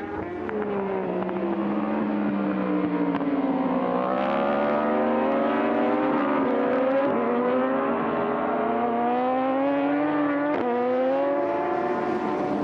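Racing motorcycle engines scream at high revs, rising and falling as the riders shift gears.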